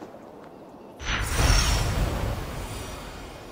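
Air rushes loudly past a large gliding bird.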